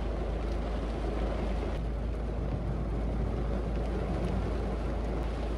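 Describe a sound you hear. Rain patters steadily on a car's windows and roof.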